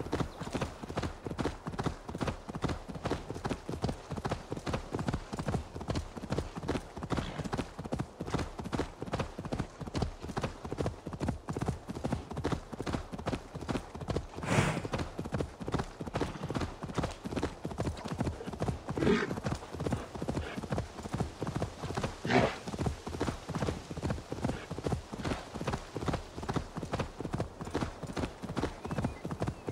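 Horse hooves pound quickly and steadily on a dirt path.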